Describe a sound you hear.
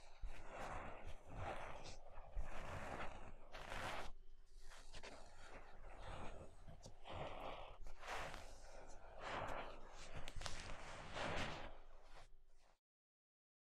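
A young woman speaks with animation through a microphone.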